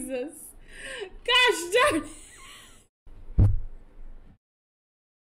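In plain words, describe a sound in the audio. A young woman laughs loudly.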